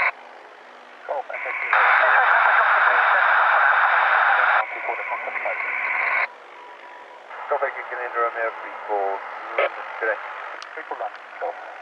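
A small propeller plane's engine drones steadily overhead.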